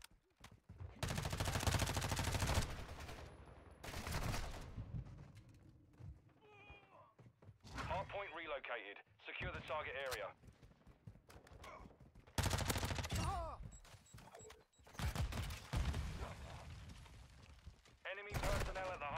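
Automatic gunfire rattles in loud bursts.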